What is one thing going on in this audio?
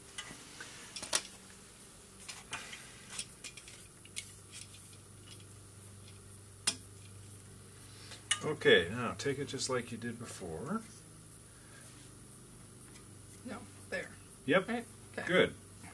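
Small metal parts click and clink as a trombone is handled.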